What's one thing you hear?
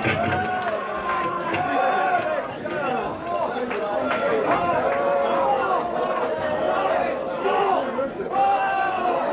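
A rock band plays loudly live, with an echo.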